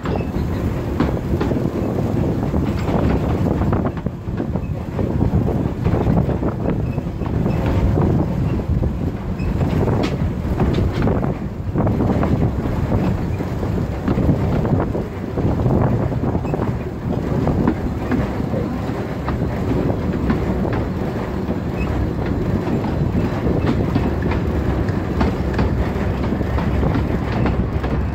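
A small steam train rumbles and clatters along the rails.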